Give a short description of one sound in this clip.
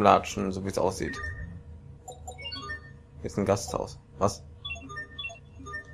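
Short electronic blips sound in quick succession.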